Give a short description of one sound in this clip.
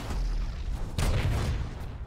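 A fiery explosion bursts with a deep boom.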